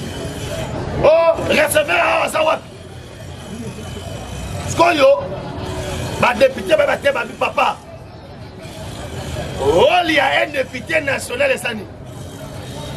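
A young man speaks loudly and with animation, close by, in short bursts.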